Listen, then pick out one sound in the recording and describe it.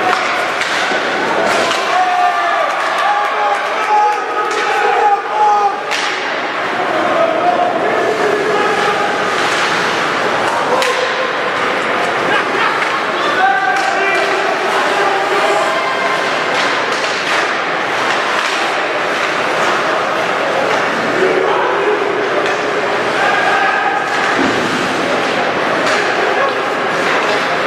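A crowd cheers and shouts in a large echoing rink.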